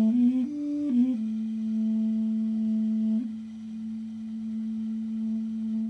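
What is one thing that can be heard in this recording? A man plays a wooden flute close to a microphone, a few quick notes settling into one long, held low note.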